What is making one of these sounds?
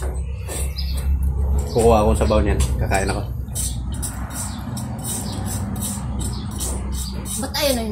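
A metal lid clatters onto a pot.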